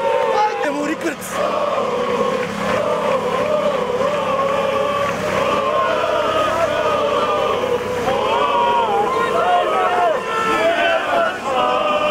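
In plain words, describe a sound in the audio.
A large crowd of men chants in unison outdoors.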